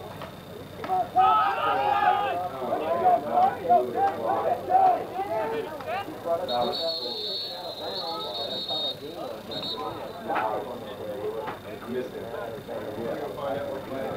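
Several young men shout and cheer outdoors, heard from a distance.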